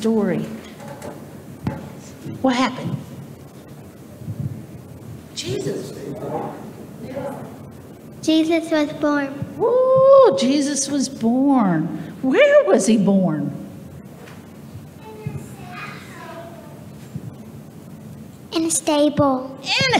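A woman speaks with animation into a microphone, heard over loudspeakers in an echoing hall.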